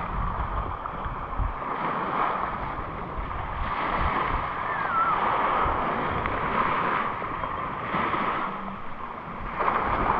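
Wind blows in gusts across the microphone outdoors.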